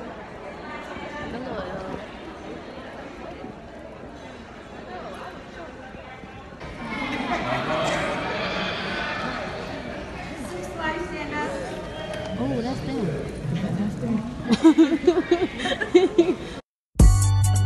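A crowd of people chatter all around in a large hall.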